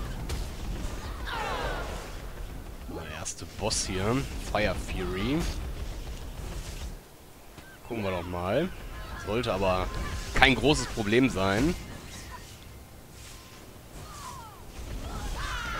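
Fiery blasts whoosh and burst repeatedly.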